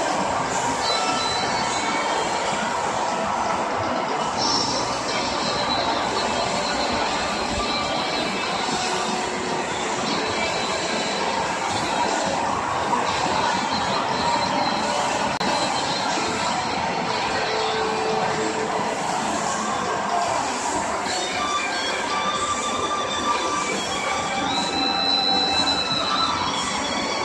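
Arcade game machines play electronic music and jingles loudly in a busy, noisy hall.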